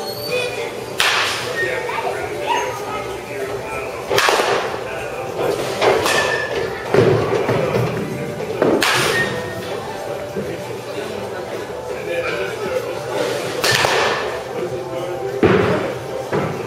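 A bat cracks against a baseball again and again, echoing in a large indoor hall.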